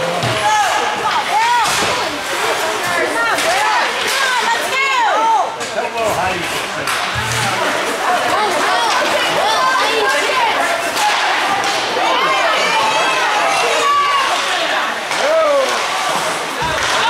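Skates scrape and hiss across the ice in an echoing rink.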